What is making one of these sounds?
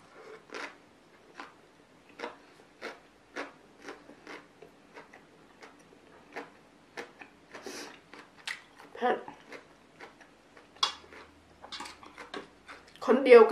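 A young woman chews food with wet, crunchy smacking sounds close to a microphone.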